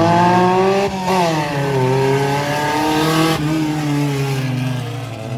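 A car engine drones loudly and its pitch rises and falls.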